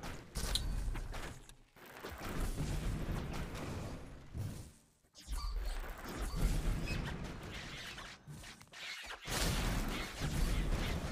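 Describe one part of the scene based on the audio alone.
Magical blasts and zaps ring out in a fast-paced game.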